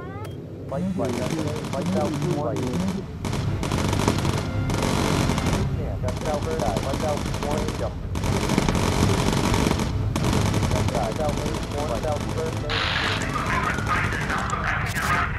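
The piston engines of a four-engine propeller bomber drone in flight.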